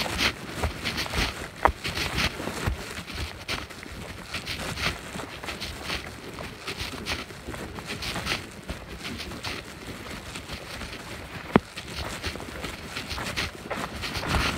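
Footsteps crunch on dry leaves and dirt along a trail.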